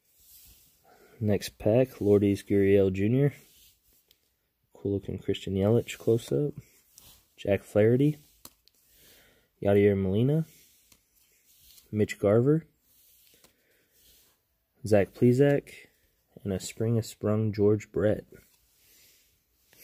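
Trading cards rustle and slide against each other in a person's hands.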